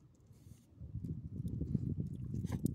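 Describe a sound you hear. A small dog licks and chews at a hand.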